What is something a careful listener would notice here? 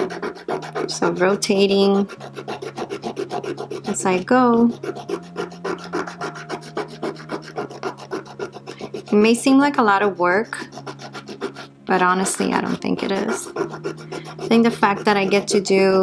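A nail file rasps rhythmically back and forth across a fingernail.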